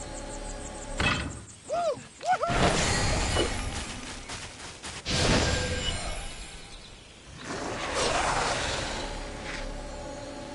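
Magical spell effects whoosh and crackle loudly.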